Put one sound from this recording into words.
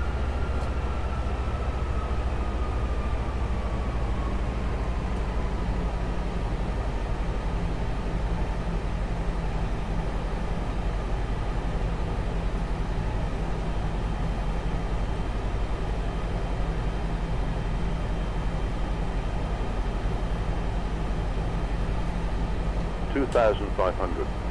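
Jet engines hum with a steady low drone throughout.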